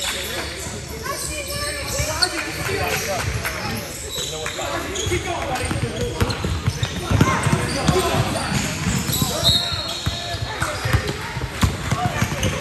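Children shout and call out across the gym.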